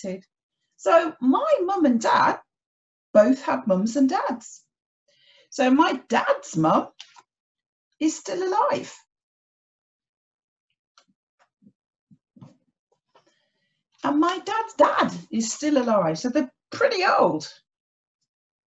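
A woman speaks clearly and calmly close to a microphone, in short phrases with pauses.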